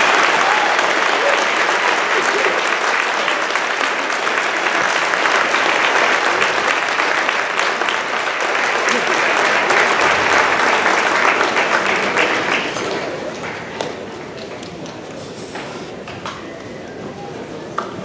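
A large crowd chatters and murmurs in an echoing hall.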